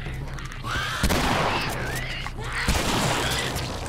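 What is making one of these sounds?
A shotgun fires loudly.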